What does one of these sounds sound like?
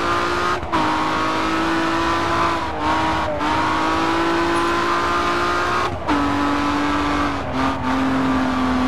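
A racing car engine briefly dips as gears shift.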